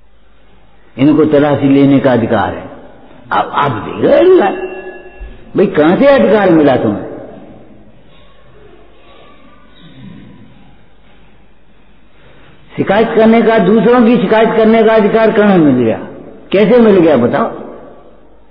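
An elderly man speaks calmly into a microphone, in bursts with long pauses.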